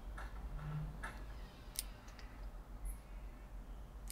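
Scissors snip through a plant stem with a sharp click.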